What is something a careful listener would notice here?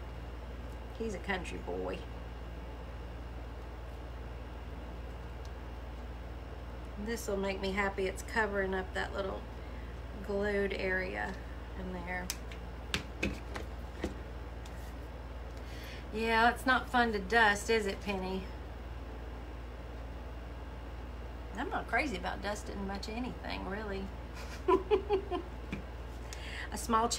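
A middle-aged woman talks calmly and close by, in bursts with pauses.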